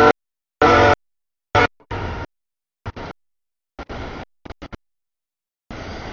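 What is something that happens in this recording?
A freight train rumbles past.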